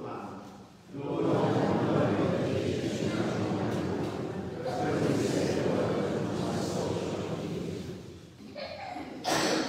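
A group of people sing together in a large echoing hall.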